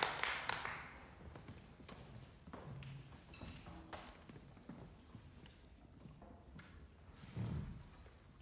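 Musicians shuffle, with chairs creaking and small knocks, in a quiet echoing hall.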